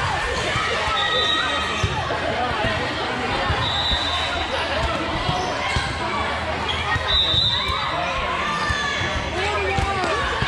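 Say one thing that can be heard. A volleyball thumps against hands and arms.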